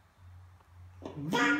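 A baby squeals and laughs close by.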